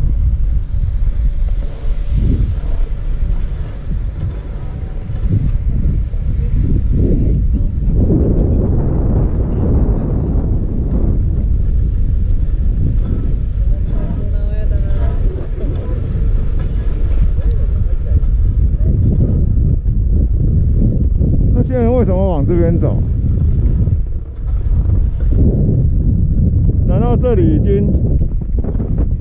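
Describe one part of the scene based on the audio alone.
Wind rushes steadily over the microphone outdoors.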